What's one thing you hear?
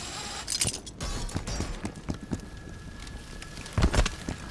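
Heavy footsteps thud on a hard floor in a video game.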